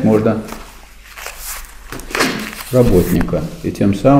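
Paper rustles.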